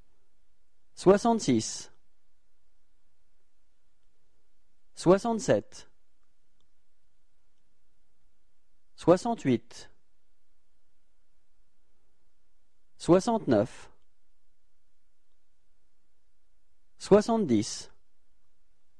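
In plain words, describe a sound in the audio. A young man speaks short, clear phrases close to a microphone, pausing between each.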